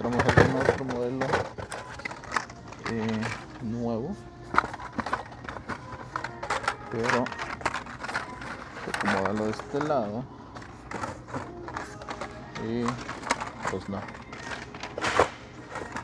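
Cardboard blister packs clatter and rustle as a hand flips through them.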